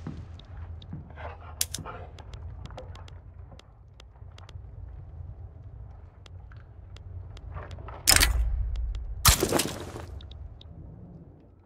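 Short, soft interface clicks sound now and then.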